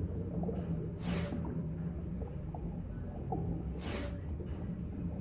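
Soft bubbly whooshes sweep by as glowing bubbles change.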